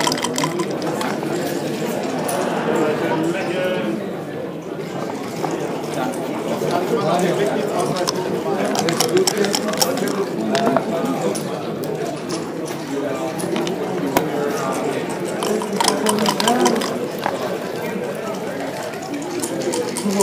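Plastic checkers click against a wooden board.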